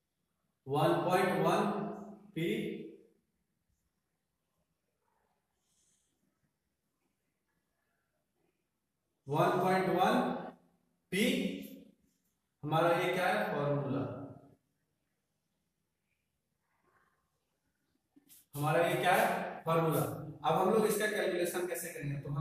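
A young man explains calmly, close by, in short bursts with pauses.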